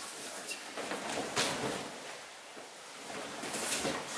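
A person thuds onto a padded mat.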